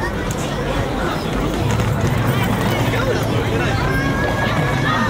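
A busy crowd murmurs with many voices outdoors.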